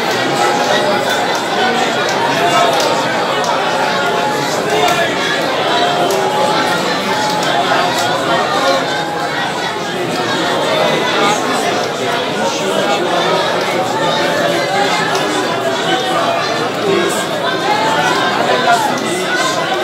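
A crowd of men talks and shouts loudly in an echoing hall.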